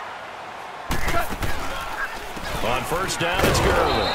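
Padded players collide in a tackle.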